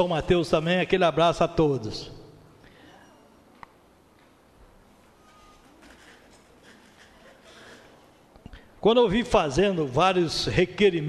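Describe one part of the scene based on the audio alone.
A middle-aged man speaks emphatically into a microphone.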